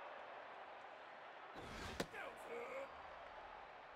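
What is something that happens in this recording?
A baseball smacks into a catcher's mitt.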